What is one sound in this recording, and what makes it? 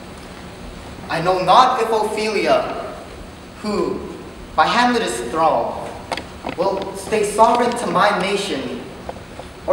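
A teenage boy speaks loudly and with expression in an echoing hall.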